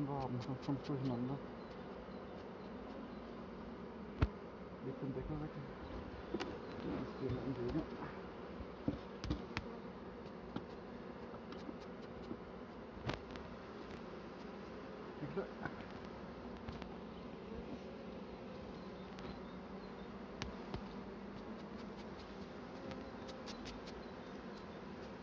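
A soft brush sweeps bees off a honeycomb.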